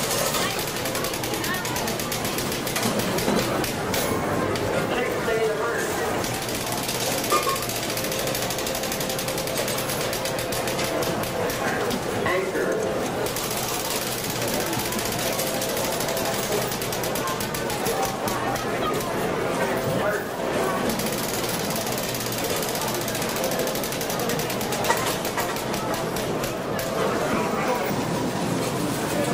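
Slot machines chime and jingle steadily.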